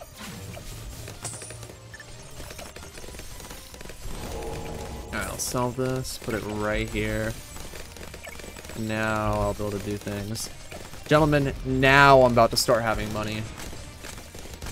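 Game sound effects pop and chime.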